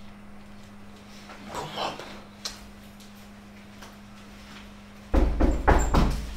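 Footsteps click on a hard floor, moving away.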